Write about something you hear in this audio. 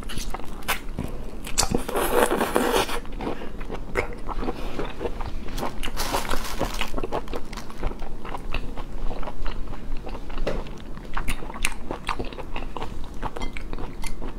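A young woman chews food with wet smacking close to a microphone.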